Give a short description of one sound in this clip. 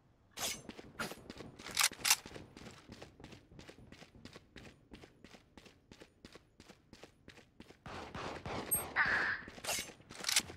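Quick footsteps patter steadily on stone.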